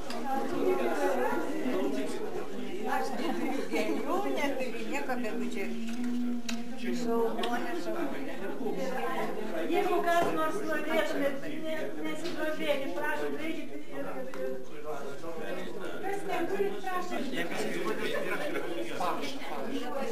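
Several elderly women talk with animation close by.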